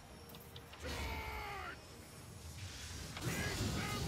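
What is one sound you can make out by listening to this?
Fantasy battle sound effects whoosh and crackle as spells are cast.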